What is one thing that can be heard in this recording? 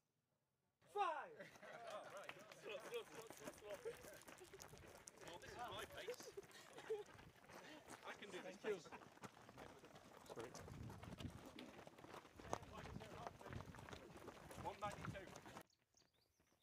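Several men talk and laugh while jogging.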